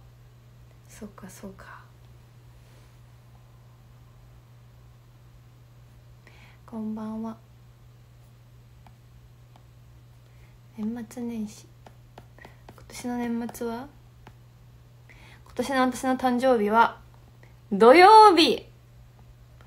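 A young woman speaks softly and casually, close to a microphone, in short bursts.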